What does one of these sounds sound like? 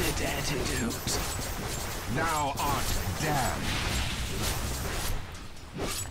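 Weapons clash and magical blasts crackle in a fast fight.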